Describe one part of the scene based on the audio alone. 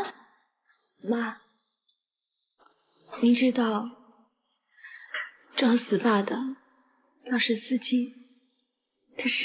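A young woman speaks in a questioning tone.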